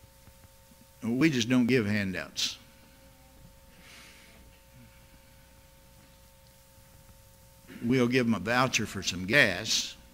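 An elderly man speaks slowly and firmly into a microphone, with long pauses.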